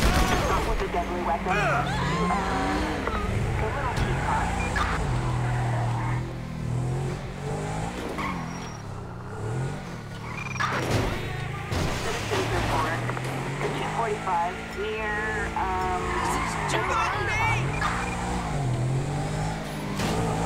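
A car engine revs up and down as the car drives.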